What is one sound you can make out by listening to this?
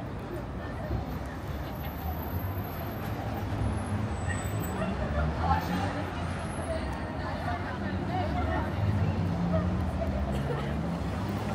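Traffic hums steadily on a city street outdoors.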